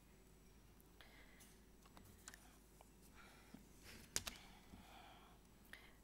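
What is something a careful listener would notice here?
A woman speaks quietly into a microphone.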